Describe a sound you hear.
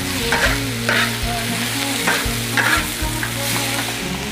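A metal spatula scrapes and tosses food in a hot wok.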